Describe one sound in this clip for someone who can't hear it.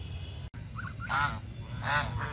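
Geese honk nearby.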